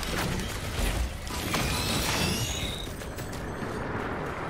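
Game weapons fire and energy blasts burst in quick bursts.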